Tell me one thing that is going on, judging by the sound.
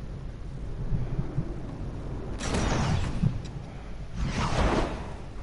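A large ball rolls over grass with low rumbling.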